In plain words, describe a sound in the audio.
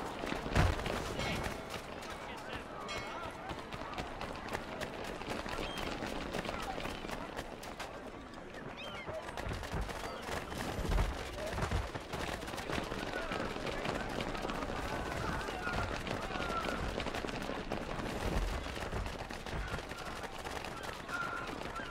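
Footsteps run on cobblestones.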